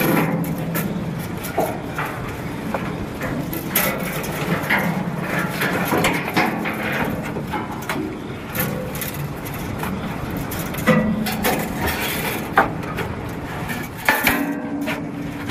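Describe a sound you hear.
Boots clank on a metal ladder rung by rung.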